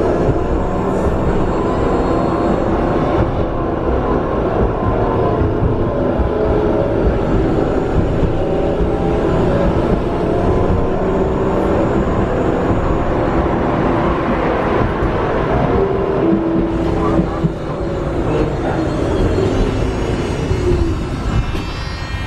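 Tram motors whine with a rising and falling pitch.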